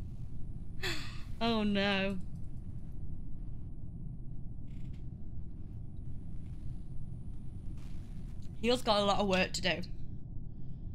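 A woman speaks briefly and expressively into a nearby microphone.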